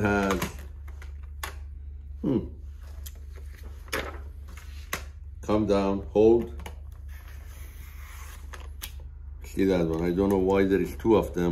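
A paper trimmer's blade slides and clicks as it cuts.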